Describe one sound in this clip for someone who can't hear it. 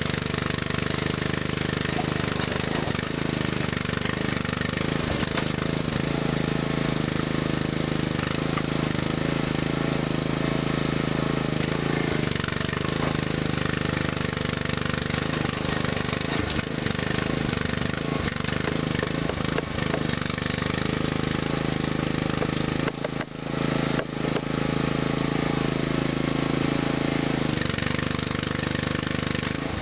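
An engine runs steadily, its pitch rising and falling as the hydraulics work.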